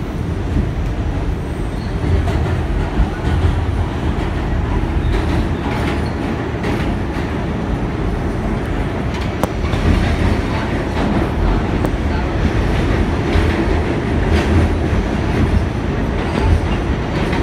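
Metal wheels screech and clatter on the rails.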